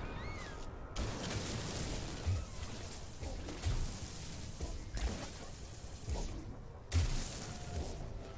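A laser weapon fires with sharp bursts and blasts.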